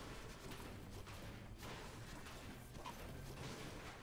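A pickaxe clangs repeatedly against sheet metal.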